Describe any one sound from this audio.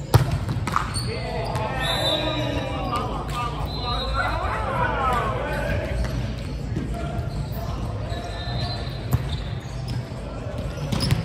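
Young men shout and call out to each other on the court.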